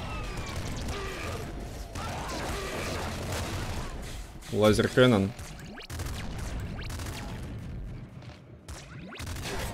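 Video game guns fire rapidly.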